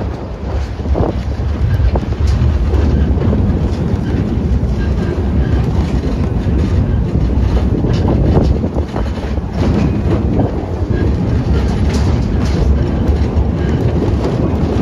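Train wheels clack and squeal on the rails.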